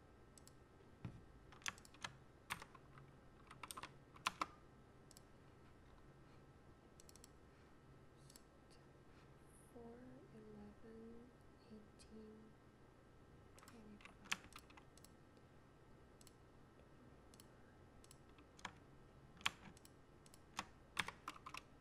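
Keyboard keys click and clack in short bursts of typing, close by.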